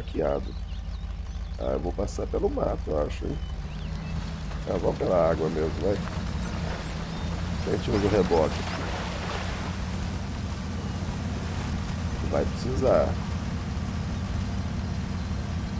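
A truck engine rumbles steadily at low revs.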